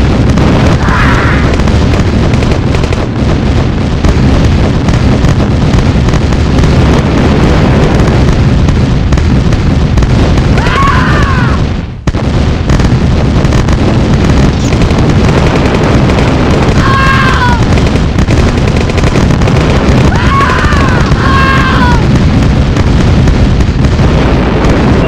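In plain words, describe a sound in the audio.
Battle noise of gunfire and explosions rumbles steadily.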